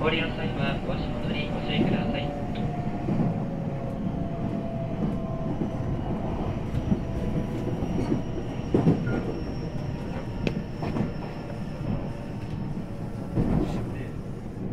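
An electric train's IGBT inverter whines over a low rumble.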